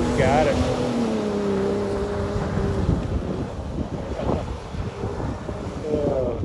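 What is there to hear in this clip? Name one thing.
Tyres spin and spray loose dirt.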